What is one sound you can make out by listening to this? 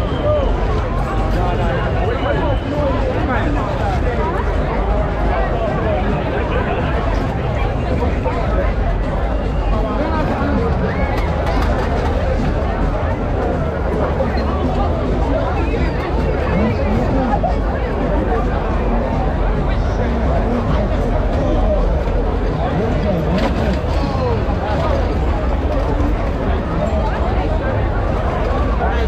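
A large crowd chatters and shouts all around outdoors.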